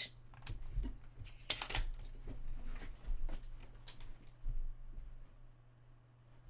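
Things rustle and knock close by as they are handled.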